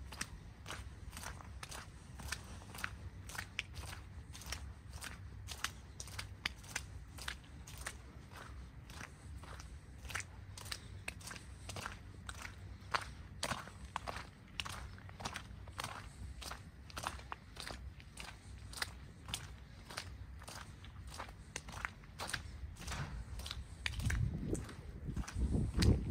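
Footsteps crunch steadily on a wet, snowy road.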